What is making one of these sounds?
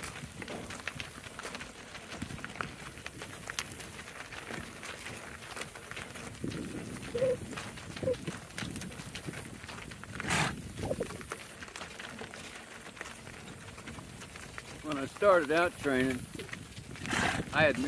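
Cart wheels crunch over gravel.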